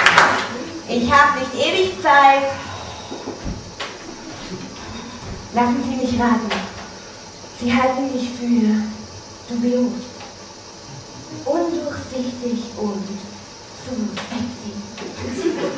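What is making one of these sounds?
A young woman speaks with animation through a microphone.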